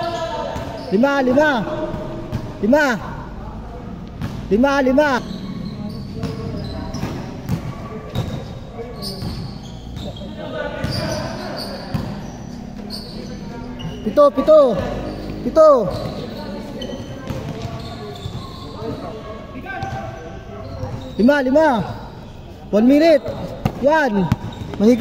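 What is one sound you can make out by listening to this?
Sneakers squeak sharply on a court floor in a large echoing hall.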